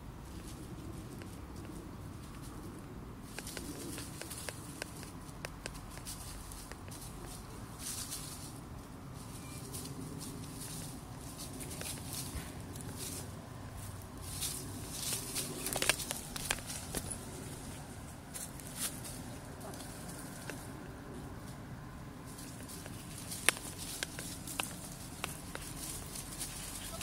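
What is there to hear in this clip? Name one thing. Small dogs scamper and rustle through dry leaves.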